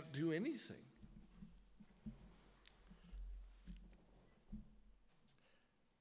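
An older man speaks into a microphone in a calm, measured voice.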